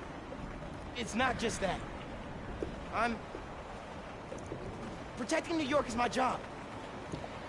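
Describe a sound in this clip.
A young man answers with emotion.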